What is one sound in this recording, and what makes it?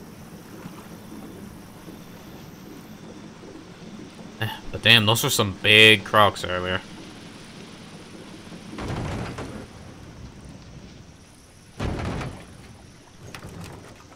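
A small boat glides slowly through still water.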